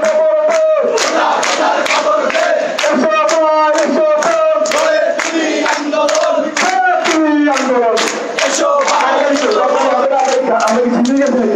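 A crowd of young men chants loudly in rhythm outdoors.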